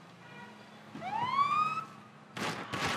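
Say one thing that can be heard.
A police siren gives a short rising whoop.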